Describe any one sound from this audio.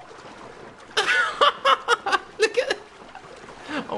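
A man laughs loudly into a close microphone.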